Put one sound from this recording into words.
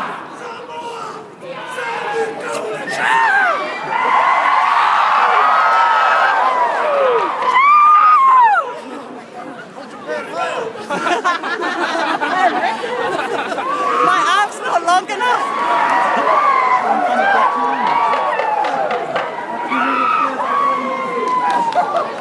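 A large crowd outdoors sings and chants loudly together.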